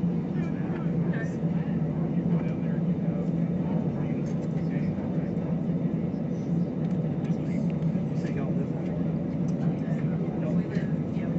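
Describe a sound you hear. Jet engines drone with a steady low hum inside an airliner cabin.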